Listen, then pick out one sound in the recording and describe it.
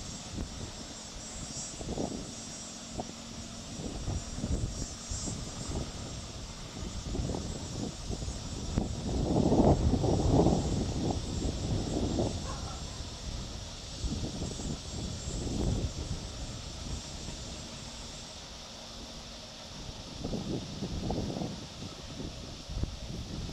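Wind blows outdoors in low, rumbling gusts.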